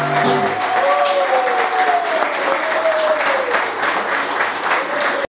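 A man strums an acoustic guitar.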